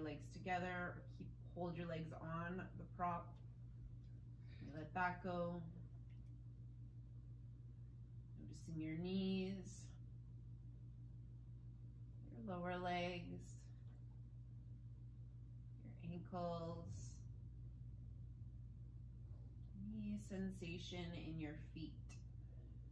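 A woman speaks calmly and slowly, close to a microphone, with long pauses.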